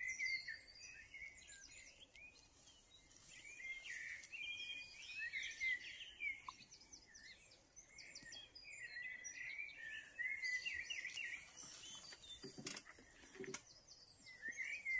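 Tall grass rustles as a child pushes through it.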